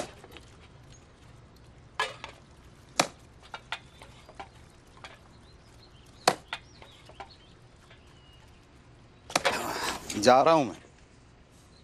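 A broom sweeps dry ground with scratchy strokes.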